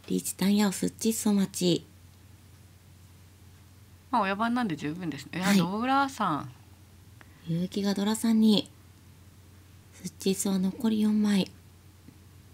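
A young woman speaks calmly into a microphone, in short bursts.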